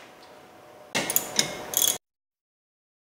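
A ratchet wrench clicks rapidly on a bolt.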